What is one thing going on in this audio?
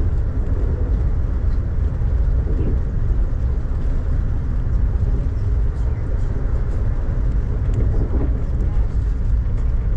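Raindrops tap lightly against a window.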